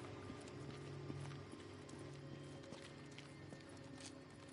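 Footsteps crunch over gravel and debris.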